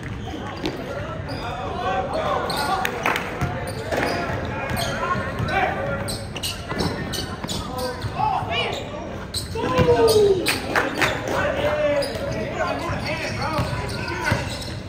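Players shout and call out across an echoing gym.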